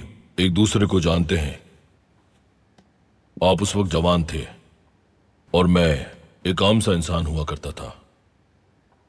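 A man speaks calmly and firmly.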